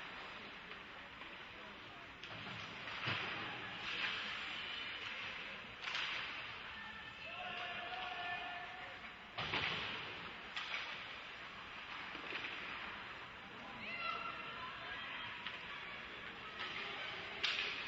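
A crowd cheers and shouts in an echoing arena.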